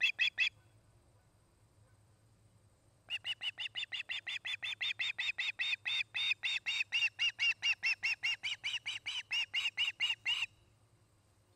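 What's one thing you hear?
An osprey calls in rapid, shrill repeated chirps close by.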